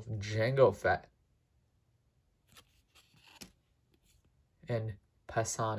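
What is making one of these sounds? Trading cards slide and rub against each other in hands.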